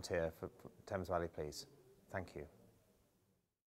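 A middle-aged man speaks calmly and close to a microphone in a room with slight echo.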